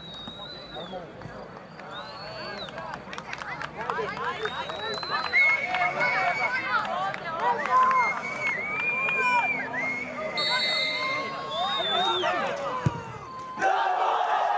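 A crowd of spectators whistles and jeers outdoors.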